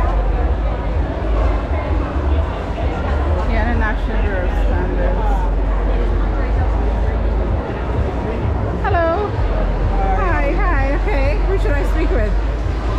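A crowd of people chatters around indoors.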